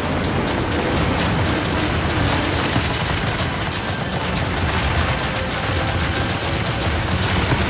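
Rapid shots fire in quick bursts.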